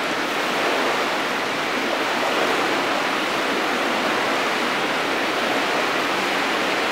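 Swimmers splash steadily through the water in a large echoing hall.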